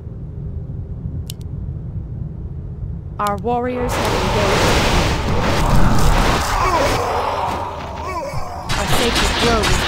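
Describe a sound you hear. Magic spells crackle and burst with loud blasts.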